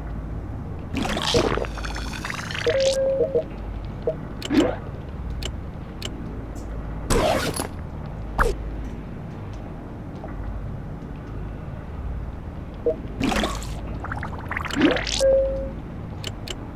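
Soft interface whooshes sweep by as menus slide open and closed.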